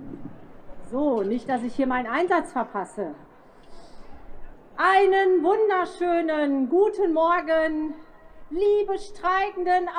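A woman sings through loudspeakers outdoors.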